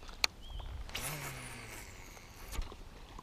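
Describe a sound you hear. A fishing line whizzes out as a rod is cast.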